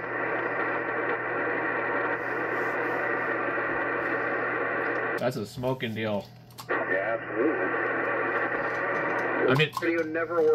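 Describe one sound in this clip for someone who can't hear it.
A radio receiver hisses with steady static through a loudspeaker.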